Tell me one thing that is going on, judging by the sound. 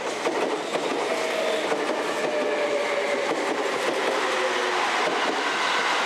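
A train's wheels squeal on the curving track.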